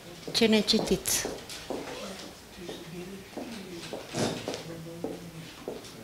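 An elderly woman speaks calmly in an echoing room.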